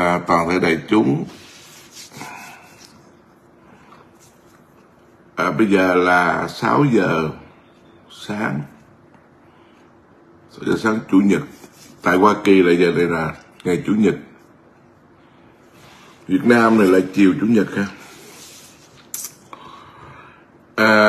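A middle-aged man speaks calmly and close to a microphone, with pauses between phrases.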